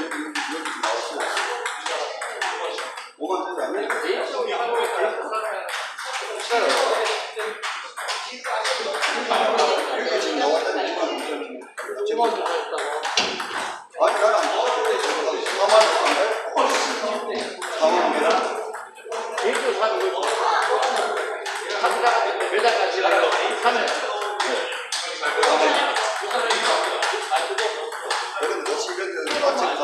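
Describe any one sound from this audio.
Table tennis balls click on tables and paddles in the background.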